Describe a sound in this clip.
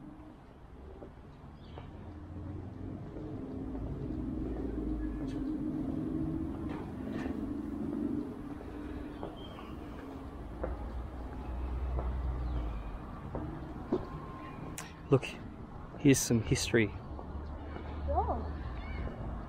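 Footsteps walk along a hard platform.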